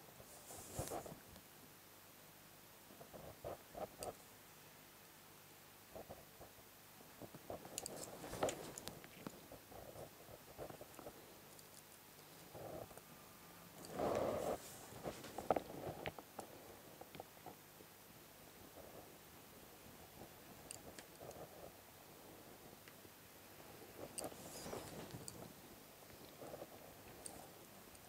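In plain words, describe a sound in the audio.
Paper rustles and crinkles as hands move it.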